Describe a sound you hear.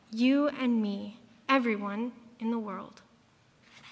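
A young woman sings into a microphone, heard through loudspeakers in a large hall.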